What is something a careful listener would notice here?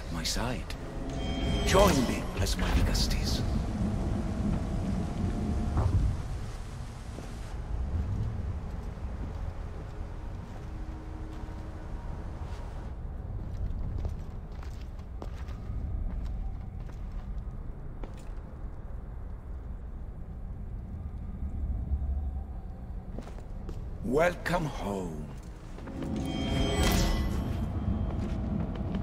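A deep-voiced man speaks slowly and grandly, close by.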